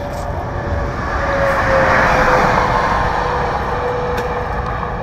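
A vehicle passes close by with a swelling and fading roar.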